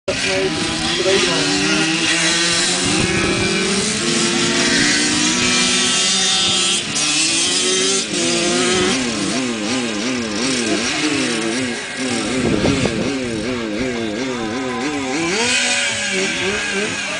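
Motorcycle engines rev and whine in the distance, rising and falling as the bikes race.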